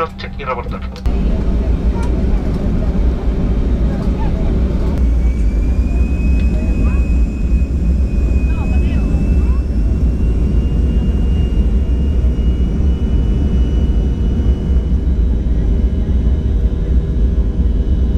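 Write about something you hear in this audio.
Jet engines roar loudly and steadily, with a whine that slowly rises in pitch.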